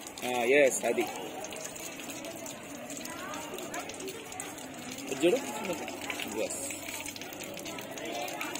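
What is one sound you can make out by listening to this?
Water trickles from taps onto a wet floor.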